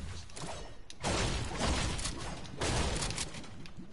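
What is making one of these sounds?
A pickaxe swings and strikes with heavy thuds.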